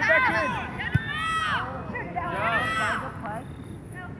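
Young women shout to each other across an open field outdoors.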